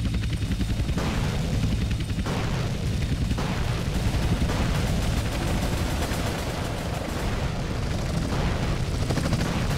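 Explosions boom in the air.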